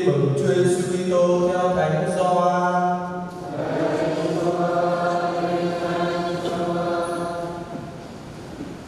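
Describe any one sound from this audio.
A man chants in a slow, sung voice through a microphone in a large echoing hall.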